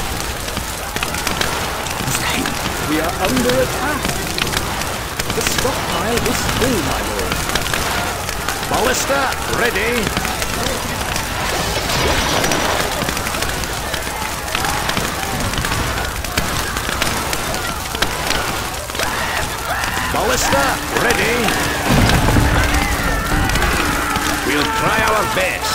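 Flames crackle and roar as buildings burn.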